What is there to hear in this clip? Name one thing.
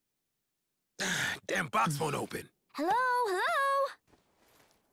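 A young woman calls out brightly.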